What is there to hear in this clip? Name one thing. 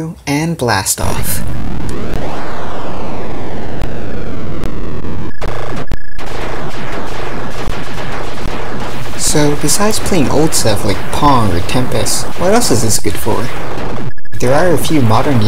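Electronic arcade game effects zap, whoosh and warble loudly.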